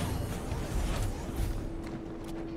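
A blade swings with a humming whoosh.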